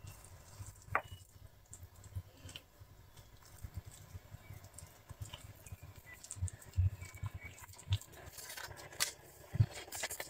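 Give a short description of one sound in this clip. A metal spoon clinks against a plastic bowl.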